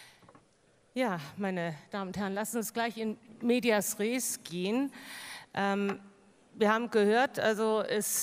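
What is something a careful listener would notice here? A middle-aged woman speaks with animation into a microphone over loudspeakers in a large hall.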